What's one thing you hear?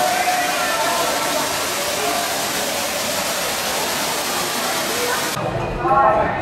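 Water splashes down a wall, cascading into a pond.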